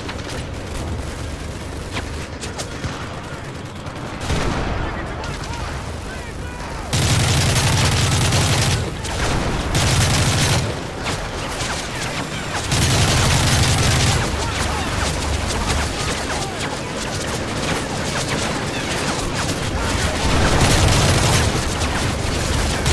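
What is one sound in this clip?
Distant gunfire crackles steadily in the background.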